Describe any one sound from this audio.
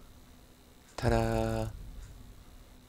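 A bright chiming tone rings out briefly.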